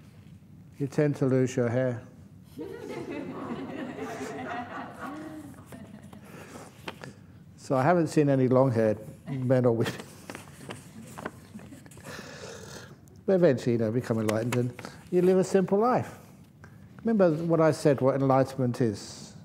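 Paper rustles as a man folds it.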